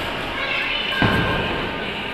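A punch lands with a sharp thud.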